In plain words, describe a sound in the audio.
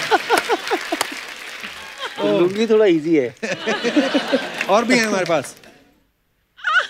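A studio audience laughs and claps.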